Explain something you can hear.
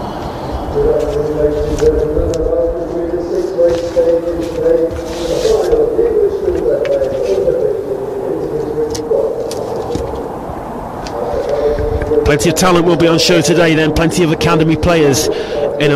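A group of men sings together outdoors, slow and steady.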